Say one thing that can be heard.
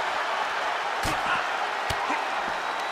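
Bodies thud heavily against each other.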